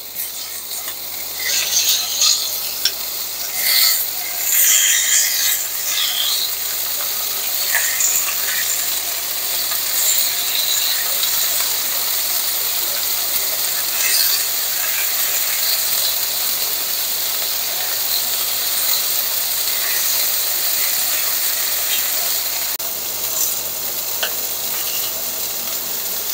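Meat sizzles steadily in hot oil.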